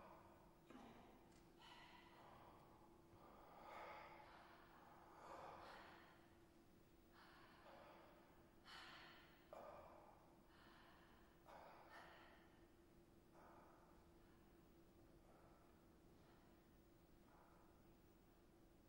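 A man speaks slowly and calmly in a large echoing hall.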